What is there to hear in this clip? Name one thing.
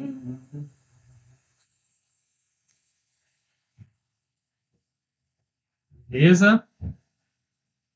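A man speaks calmly and briefly, close to a microphone.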